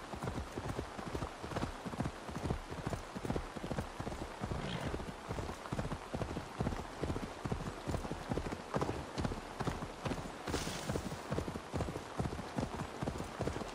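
A horse's hooves thud rhythmically on a dirt path.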